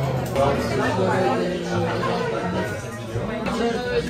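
Several adults talk at once in a murmur of indoor chatter.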